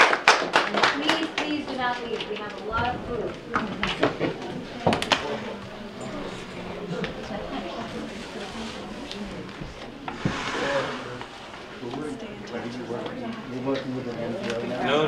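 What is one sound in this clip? Several people murmur and talk quietly in a small room.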